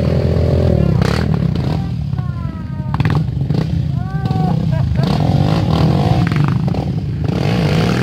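A quad bike engine growls as it churns through mud.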